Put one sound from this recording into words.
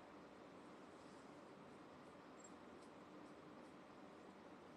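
Fingers rustle softly through hair close to the microphone.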